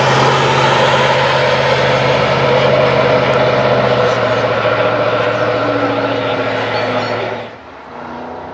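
An old car's engine drones steadily as it pulls away.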